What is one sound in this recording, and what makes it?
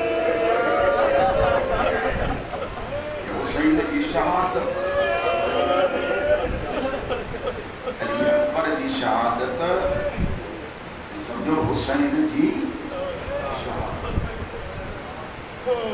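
A man chants mournfully and loudly through a microphone in an echoing hall.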